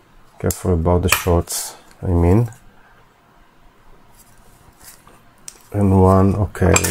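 A battery pack clicks and rattles softly as it is handled.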